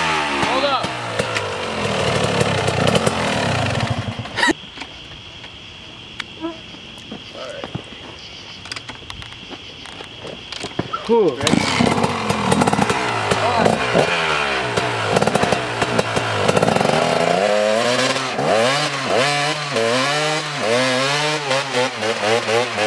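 A dirt bike engine revs loudly up and down.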